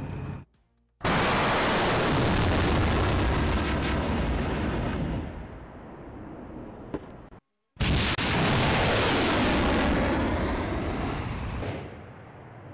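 A rocket launches with a loud, roaring blast that fades into the distance.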